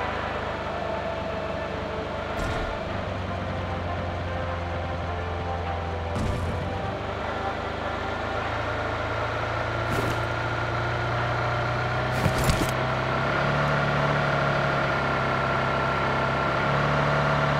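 A car engine hums steadily as a car drives over rough ground.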